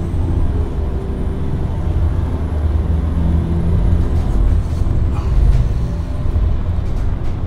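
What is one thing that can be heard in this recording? Tyres rumble over a rough gravel road.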